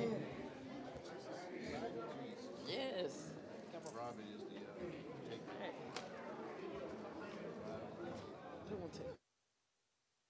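Men and women chatter and murmur in a large echoing hall.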